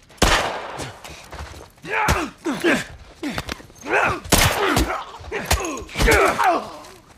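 Gunshots ring out loudly, several times.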